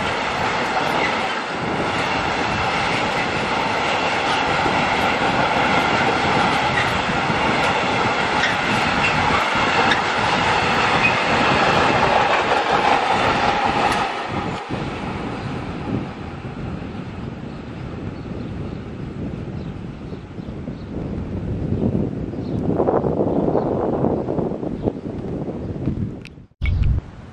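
A freight train rumbles past close by on the tracks and slowly fades into the distance.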